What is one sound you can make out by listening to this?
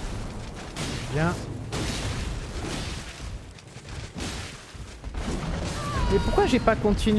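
A huge beast roars and groans.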